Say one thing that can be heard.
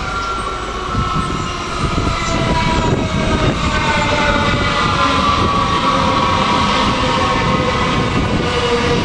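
Train wheels rumble and clatter loudly on the rails.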